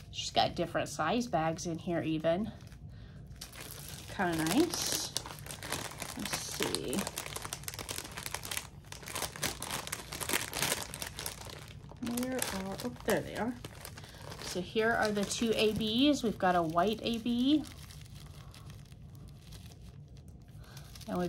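Plastic bags rustle and crinkle as they are handled.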